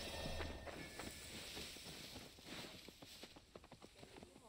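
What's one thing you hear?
Leaves rustle as a figure crawls through bushes.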